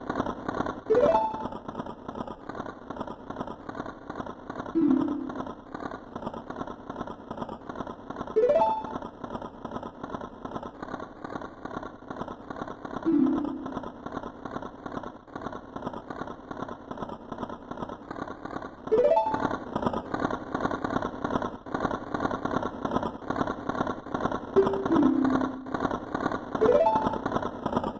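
A short rising chime sounds.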